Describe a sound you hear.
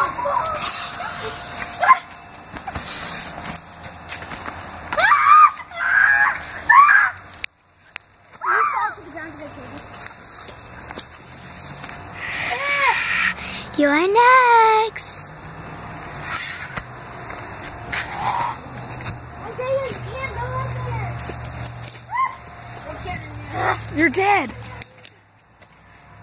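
Footsteps crunch through dry leaves and twigs.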